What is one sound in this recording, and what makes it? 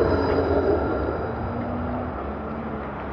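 A tram rumbles past close by and moves away.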